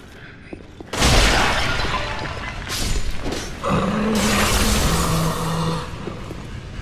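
A heavy blade swings and strikes with loud blows.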